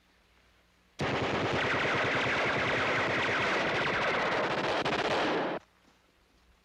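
An explosion roars and rumbles.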